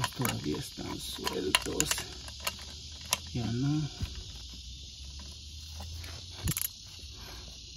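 A ratchet wrench clicks as a bolt is turned.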